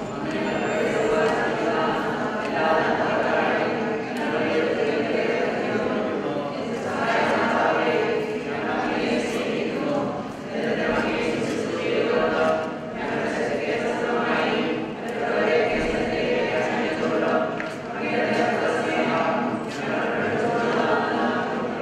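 A man chants steadily in an echoing hall.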